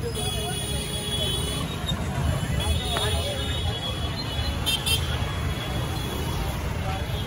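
Motor scooters rumble past along a busy street.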